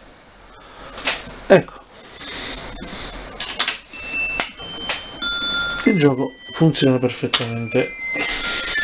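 Electronic video game music and chimes play from a small television speaker.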